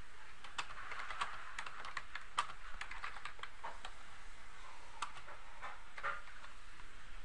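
Keyboard keys click quickly as someone types.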